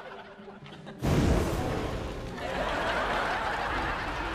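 A tree bursts into flames with a loud whoosh and crackles as it burns.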